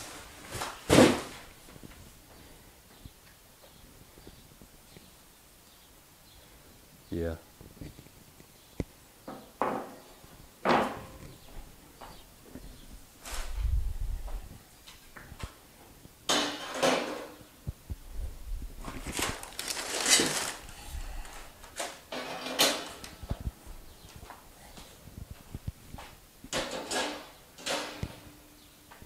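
Metal grates clatter and scrape as they are moved and set down.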